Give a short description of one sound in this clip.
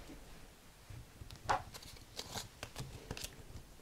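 Paper rustles and crinkles as it is folded by hand.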